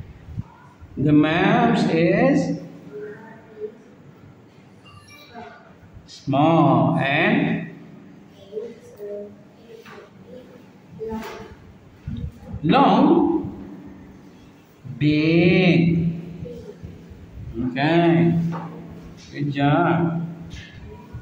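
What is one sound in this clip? A young boy says words aloud clearly, close by, in short bursts with pauses.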